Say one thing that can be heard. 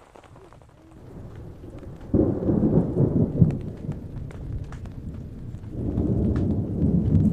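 Hail patters and drums on a tent's fabric.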